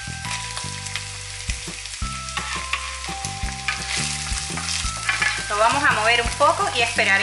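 Chopped onion sizzles in hot oil.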